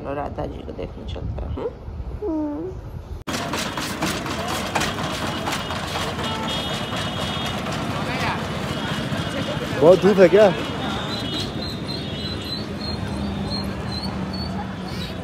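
Crowd chatter and street bustle fill the air outdoors.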